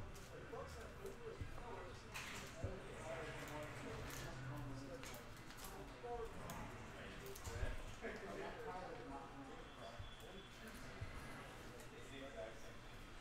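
Cards slide and tap as they are handled and set down.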